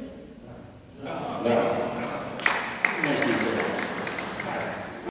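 A crowd of men, women and children talk and call out together in a large echoing hall.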